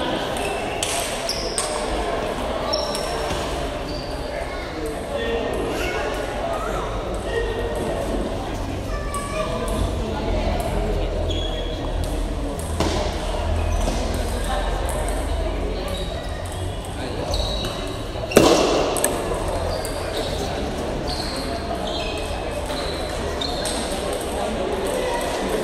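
Spectators murmur and chatter in a large echoing hall.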